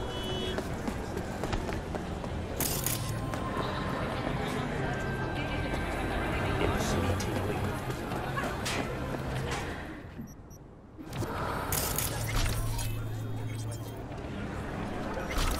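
Footsteps tap on hard pavement.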